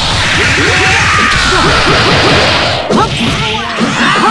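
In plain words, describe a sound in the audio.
Rapid punches and kicks land with sharp thuds.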